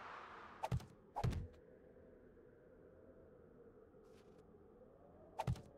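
Heavy wooden blocks thud into place one after another.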